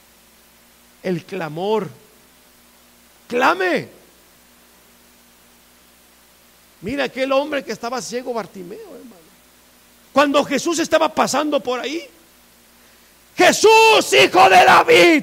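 A middle-aged man preaches through a microphone in bursts, growing louder and more forceful.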